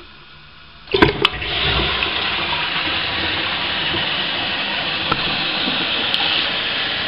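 Water rushes and gushes steadily in a toilet cistern.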